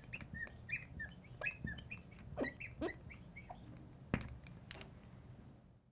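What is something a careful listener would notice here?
A marker squeaks and taps on a glass board.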